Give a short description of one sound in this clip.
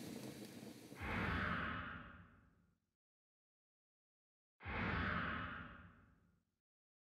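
An item is picked up with a soft whooshing chime.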